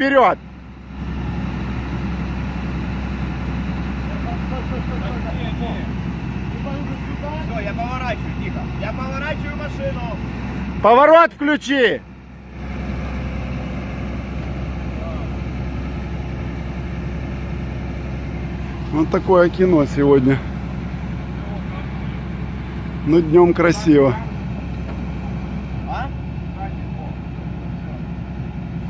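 A crane engine hums steadily outdoors.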